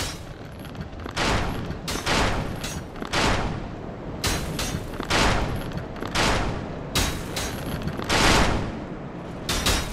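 Heavy armoured footsteps thud on stone, echoing.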